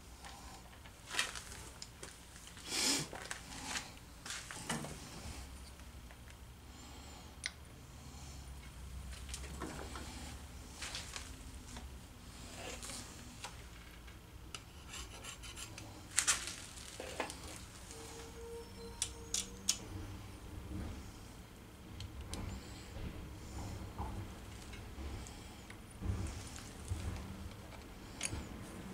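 Metal gears clink and clatter as they are fitted onto a machine.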